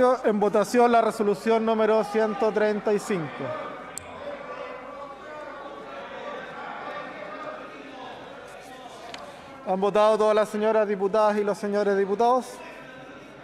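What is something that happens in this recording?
A woman speaks steadily into a microphone in a large hall.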